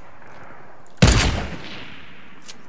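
A shotgun blast booms in a video game.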